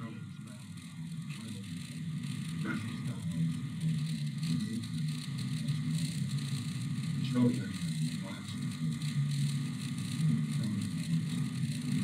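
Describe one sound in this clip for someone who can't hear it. An elderly man speaks calmly, heard through a speaker.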